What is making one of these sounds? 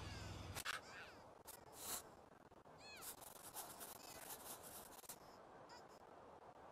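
A pencil scratches on paper.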